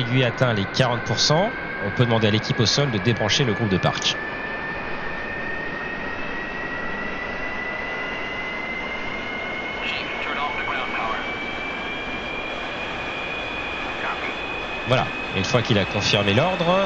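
A jet engine whines steadily, its pitch slowly rising.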